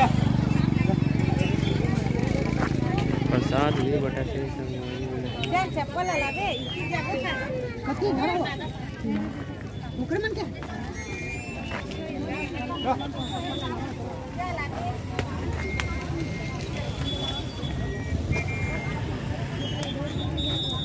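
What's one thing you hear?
A crowd of men and women chatter all around, outdoors.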